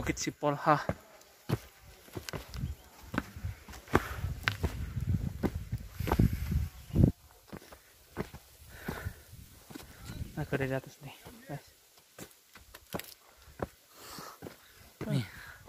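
A young man talks close by, with pauses between his words.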